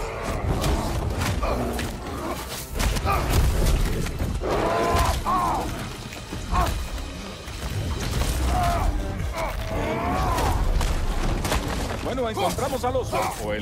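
Heavy blows thud in a fight.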